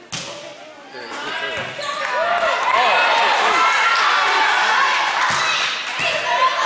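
A crowd of spectators cheers and shouts loudly in an echoing gym.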